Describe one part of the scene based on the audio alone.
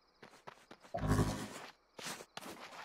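Hands grip and scrape while climbing a wall.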